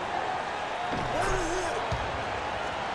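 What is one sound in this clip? A basketball swishes through a net.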